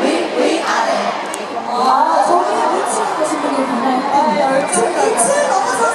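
Young women speak excitedly over loudspeakers.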